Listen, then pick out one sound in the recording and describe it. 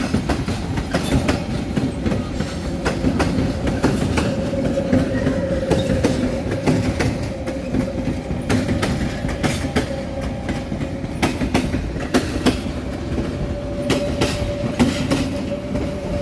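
A train's motors whine steadily.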